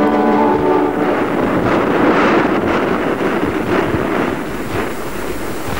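Large waves crash and roar.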